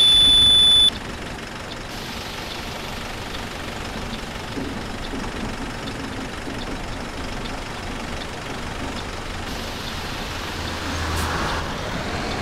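A diesel city bus engine idles.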